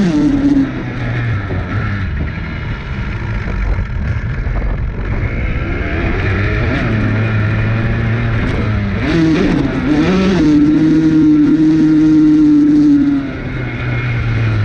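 Tall grass swishes against a dirt bike.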